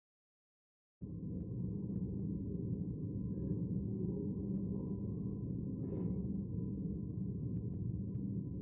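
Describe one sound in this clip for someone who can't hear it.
Men and women murmur quietly in a large echoing hall.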